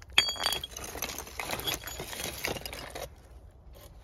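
Loose stones scrape and clatter as a hand moves them.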